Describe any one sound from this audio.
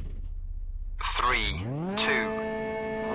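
A rally car engine revs up sharply.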